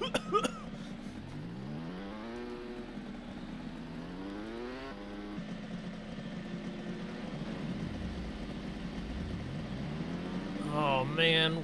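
A quad bike engine revs, rising and falling in pitch.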